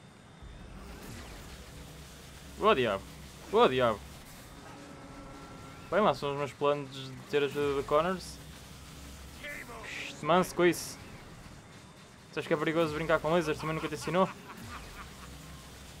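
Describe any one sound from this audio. Energy beams fire with crackling blasts.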